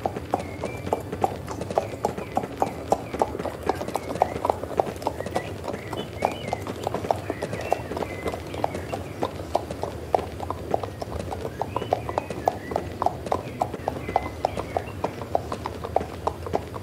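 Horse hooves clop steadily on stone paving.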